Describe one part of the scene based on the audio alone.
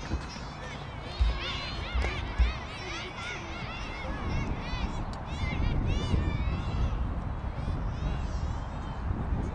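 Young children chatter and call out excitedly nearby.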